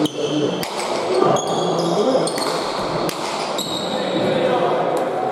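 A hard ball smacks sharply against a wall, echoing through a large hall.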